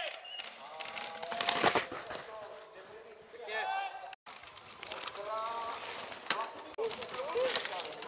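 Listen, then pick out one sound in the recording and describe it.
A mountain bike rushes past over dirt.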